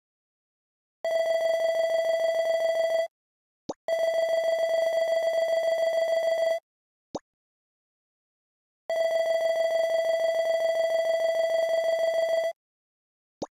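Rapid electronic blips chatter as dialogue text types out.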